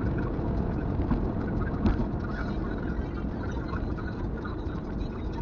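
Road noise and engine hum fill a car's cabin as it drives along a highway.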